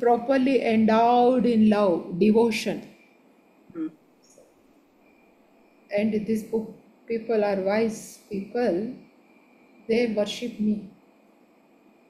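A man explains something calmly, heard through an online call.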